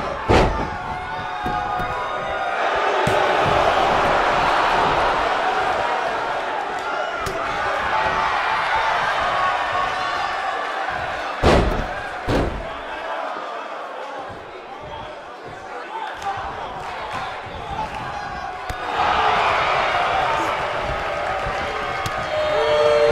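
A large crowd cheers and roars throughout in a big arena.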